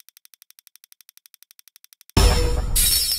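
A soft electronic ticking repeats quickly and evenly.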